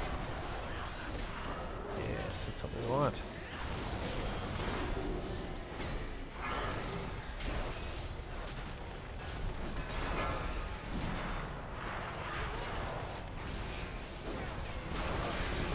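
Magic spells whoosh and clash in a busy fantasy battle.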